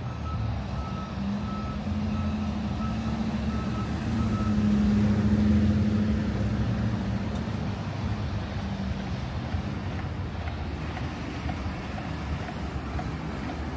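Traffic rumbles steadily on a nearby street.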